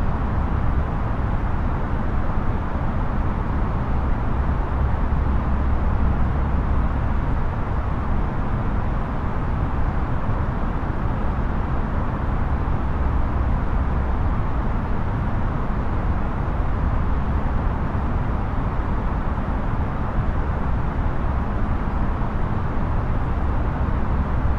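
A steady, low roar of jet engines and rushing air drones on.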